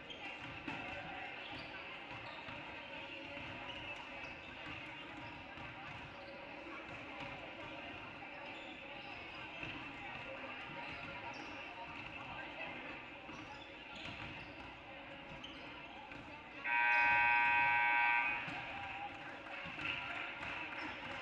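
Spectators murmur in the stands.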